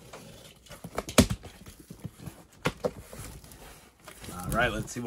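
Cardboard flaps scrape and rustle as a box is opened.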